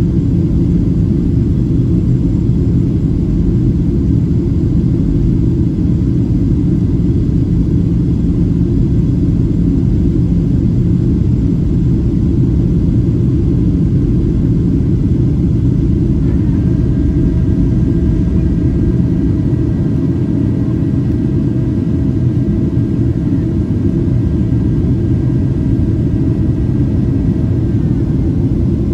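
A jet engine roars steadily in the cabin of an airliner in flight.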